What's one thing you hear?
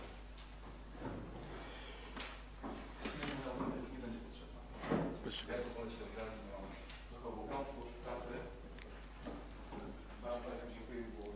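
A man speaks calmly in a room with a slight echo.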